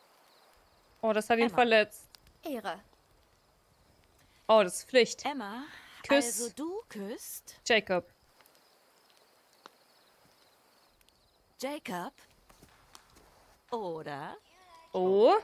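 A young woman speaks with surprise, close by.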